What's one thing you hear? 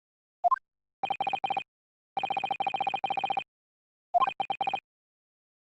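Short electronic blips tick rapidly in bursts.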